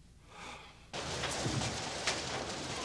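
Water rushes loudly from fire hoses outdoors.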